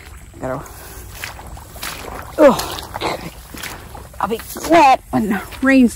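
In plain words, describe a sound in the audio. Footsteps squelch softly on wet grass.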